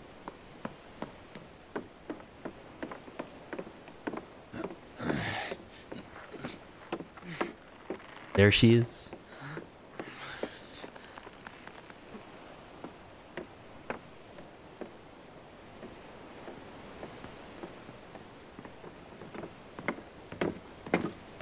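Footsteps knock on wooden boards at a steady walking pace.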